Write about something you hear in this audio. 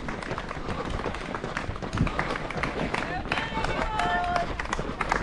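A crowd of onlookers claps and cheers.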